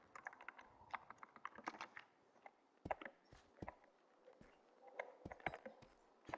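A bowstring creaks as it is drawn.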